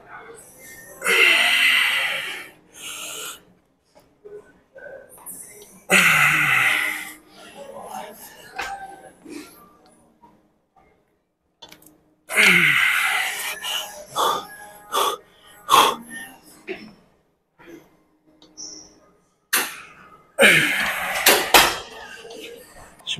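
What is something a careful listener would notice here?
A young man grunts and exhales loudly with strain, close by.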